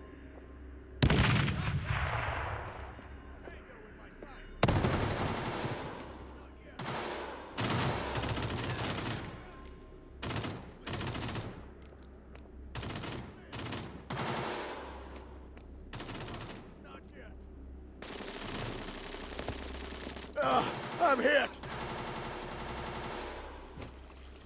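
Gunshots and explosions ring out in short bursts.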